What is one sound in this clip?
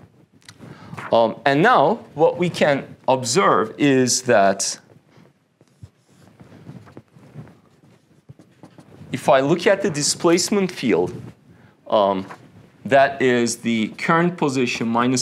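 A man lectures calmly into a close microphone.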